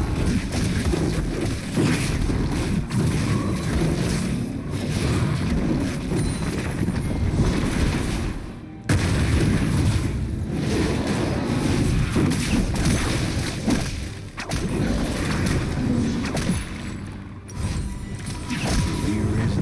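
Magic spell effects whoosh and crackle in quick bursts.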